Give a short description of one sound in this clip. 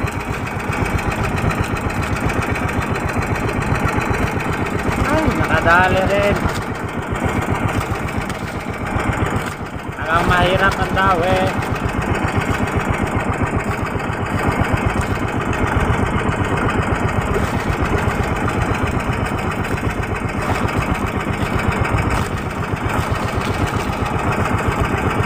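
A boat's engine chugs steadily throughout.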